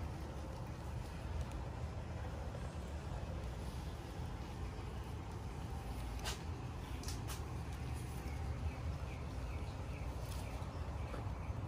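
A hand brushes softly against leaves and petals.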